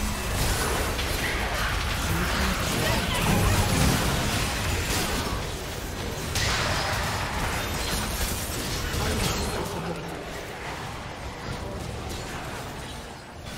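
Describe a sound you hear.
Magic spells blast and crackle in a fierce game battle.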